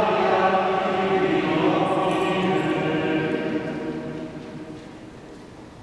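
A man chants in song, echoing through a large reverberant hall before fading away.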